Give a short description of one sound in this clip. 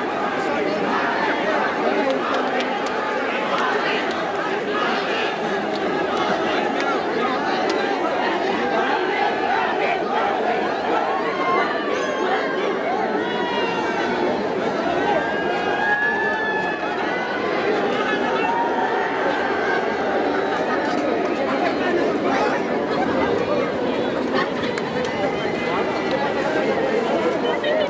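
A large crowd outdoors cheers and shouts all around.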